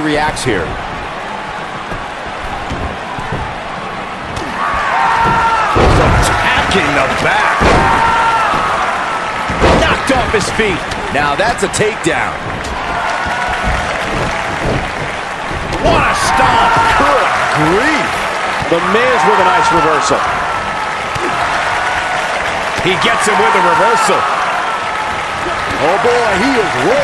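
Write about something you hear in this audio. A crowd cheers and roars throughout.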